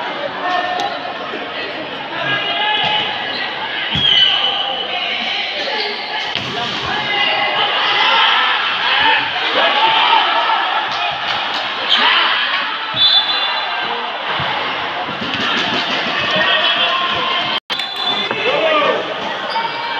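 A crowd of young spectators cheers and chatters loudly in a large echoing hall.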